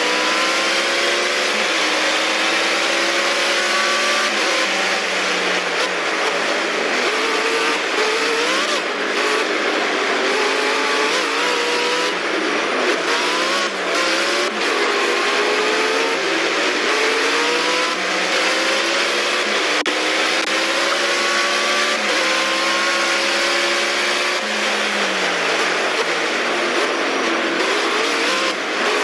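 A race car engine roars and revs up and down through gear changes.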